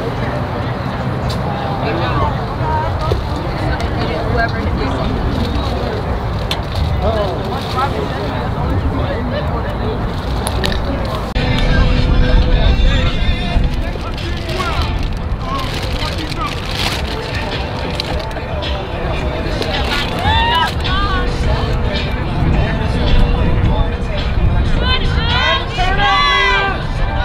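Young girls shout and cheer on an open field, heard from a distance.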